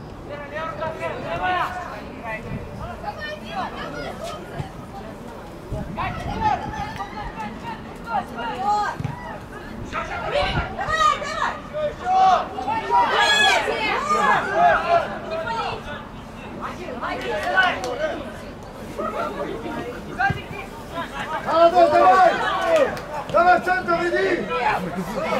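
Young men shout and call out to each other across an open outdoor pitch.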